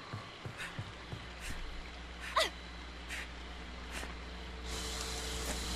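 Footsteps run across a wooden floor.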